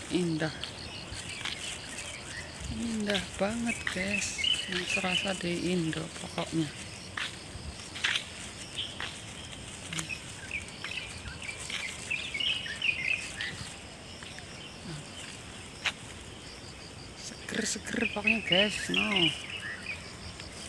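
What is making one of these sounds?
A middle-aged woman talks calmly close to the microphone, outdoors.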